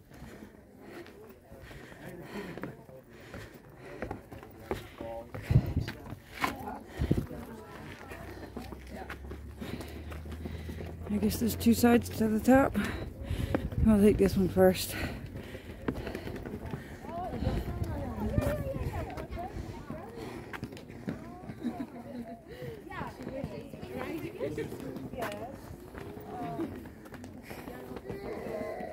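Footsteps scuff on rough stone.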